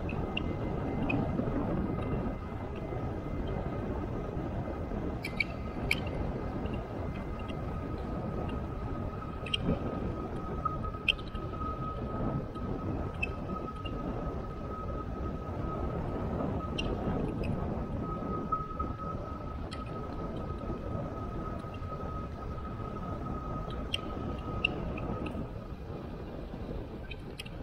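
Bicycle tyres roll steadily over asphalt.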